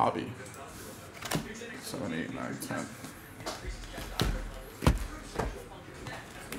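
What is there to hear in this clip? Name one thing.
Cardboard boxes knock and rustle as they are handled.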